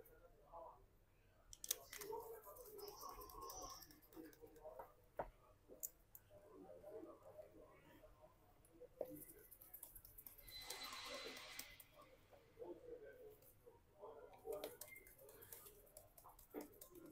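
A small metal tool scrapes and clicks against plastic.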